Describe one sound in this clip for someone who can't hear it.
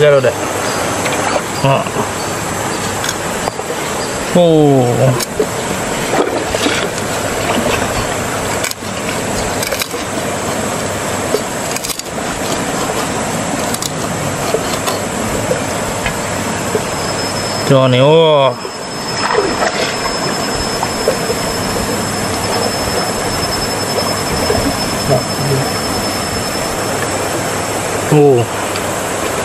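Water flows and splashes gently nearby.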